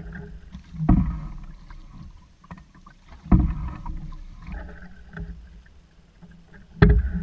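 A paddle splashes and pulls through water in steady strokes.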